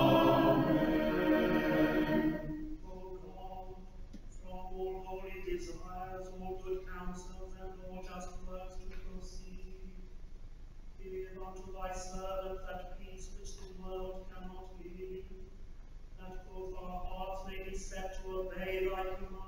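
A choir sings slowly in a large echoing hall.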